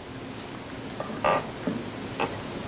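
A young woman speaks softly into a microphone.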